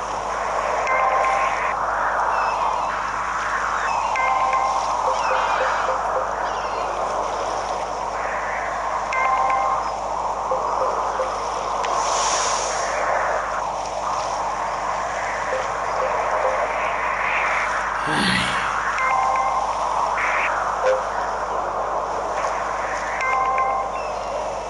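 Upbeat electronic game music plays through a television speaker.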